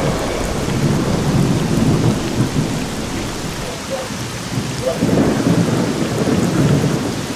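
Wind blows through trees outdoors in low gusts.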